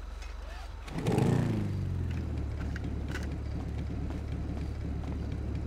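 A motorcycle engine starts and idles with a low rumble.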